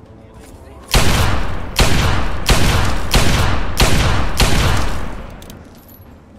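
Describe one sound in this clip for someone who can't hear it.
Heavy gunshots boom in quick succession, each followed by a rumbling echo.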